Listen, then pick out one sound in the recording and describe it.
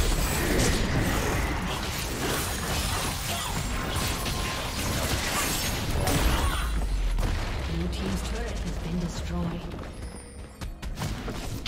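Spells and weapon hits crackle and clash in a busy fight.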